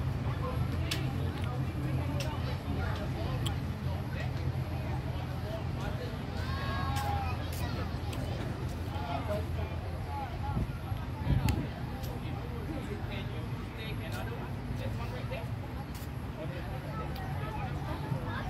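Many young children chatter and shout across an open field.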